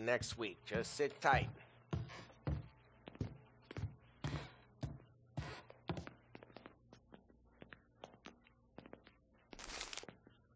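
Footsteps thud steadily across a wooden floor.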